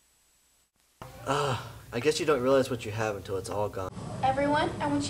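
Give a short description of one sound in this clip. A teenage boy talks.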